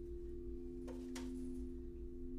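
A singing bowl is struck once with a sharp ring.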